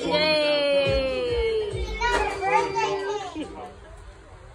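A baby squeals and babbles in a high voice nearby.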